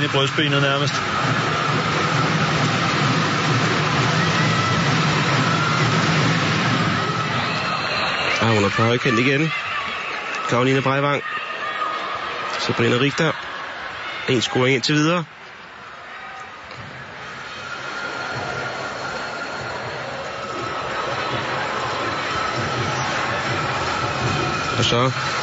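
A large crowd roars and chants in a big echoing hall.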